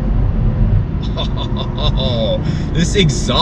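A young man speaks with animation inside the car.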